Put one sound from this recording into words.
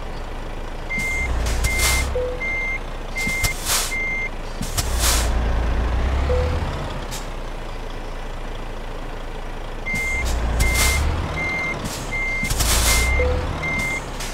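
A truck's air brakes hiss in bursts.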